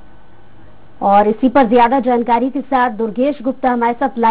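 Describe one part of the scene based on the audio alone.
A woman speaks clearly into a microphone, like a news presenter.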